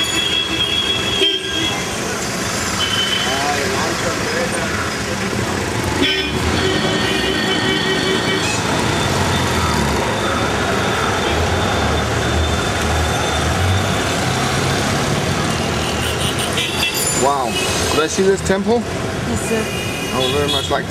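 A car engine hums close by.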